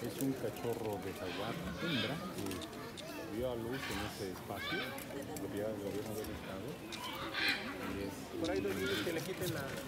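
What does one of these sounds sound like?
A man speaks nearby, outdoors.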